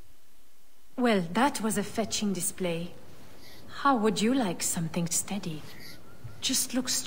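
A middle-aged woman speaks warmly and cheerfully.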